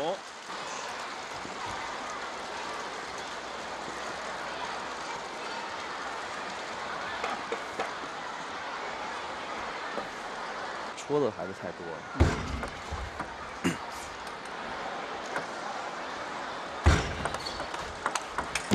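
A table tennis ball clicks sharply off paddles and the table.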